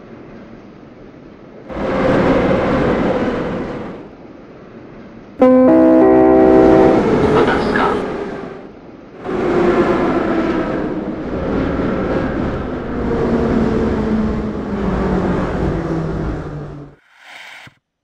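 An electric metro train rumbles through a tunnel.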